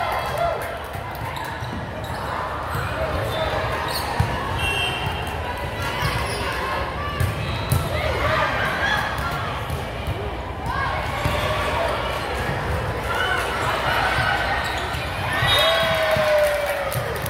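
Volleyballs thump off hands and bounce on a hard floor in a large echoing gym.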